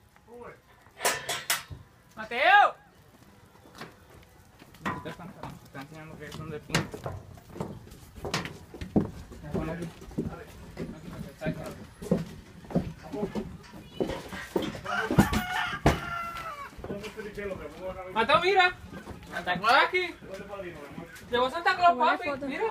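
Men talk with each other nearby.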